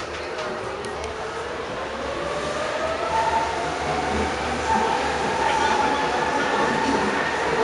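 A train's motor whines, rising in pitch as it speeds up.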